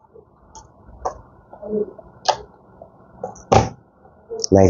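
A plastic cable connector clicks into a socket.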